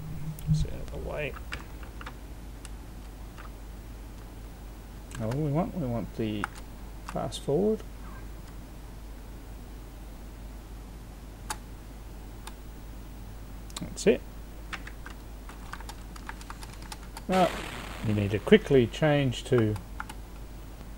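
A man talks in short bursts, close to a microphone.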